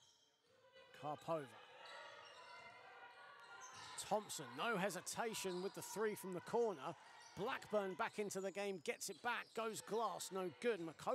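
Sneakers squeak sharply on a hard court floor in a large echoing hall.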